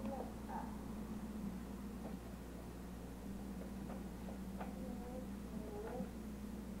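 A toddler babbles softly nearby.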